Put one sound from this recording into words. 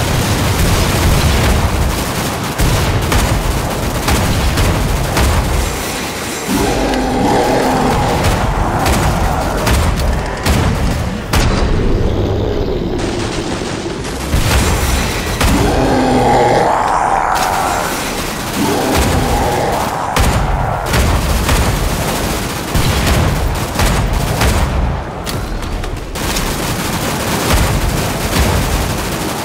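Explosions boom and crackle with fire.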